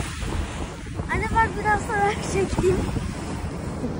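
A young boy talks with excitement.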